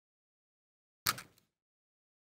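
Metal tweezers tap lightly on card.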